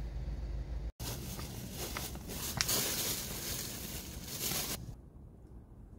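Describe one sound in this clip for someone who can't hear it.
Footsteps rustle through grass close by.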